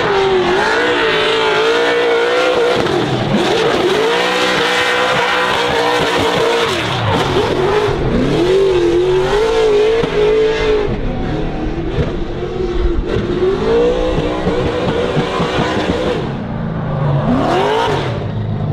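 Tyres screech as a car slides sideways.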